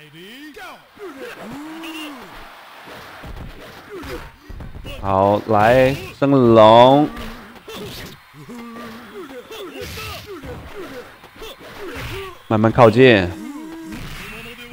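Game punches and kicks land with sharp thuds and smacks.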